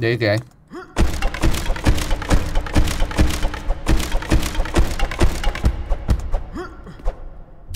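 An axe chops rapidly through wooden boards, with splintering knocks.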